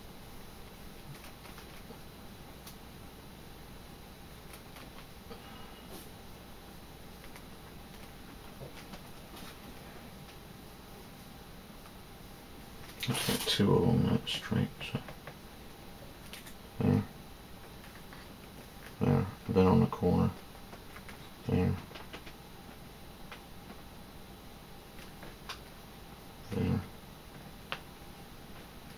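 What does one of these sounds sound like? A strip of leather rustles as hands work it.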